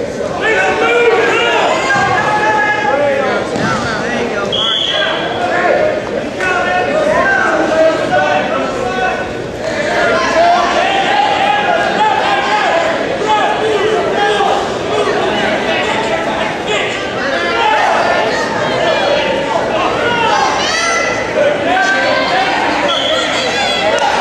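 A crowd of spectators talks and shouts in an echoing gym.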